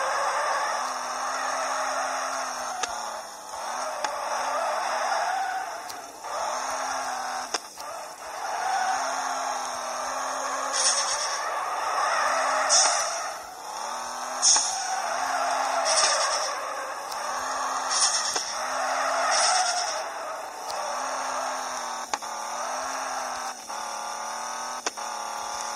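A car engine revs and whines, rising and falling in pitch.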